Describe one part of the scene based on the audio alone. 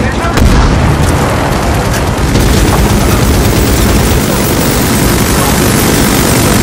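Gunfire cracks in rapid bursts nearby.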